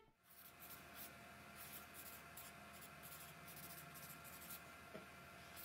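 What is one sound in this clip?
A felt-tip marker squeaks across paper.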